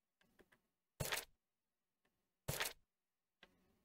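A page turns with a soft whoosh.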